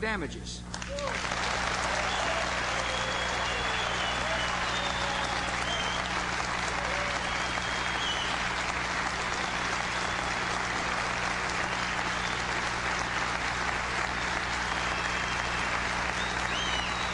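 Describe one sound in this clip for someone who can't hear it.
A large crowd applauds and cheers loudly.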